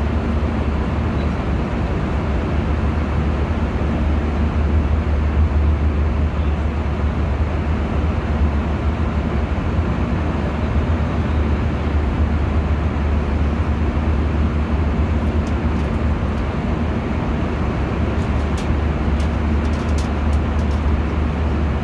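A jet engine roars steadily with a deep, constant hum.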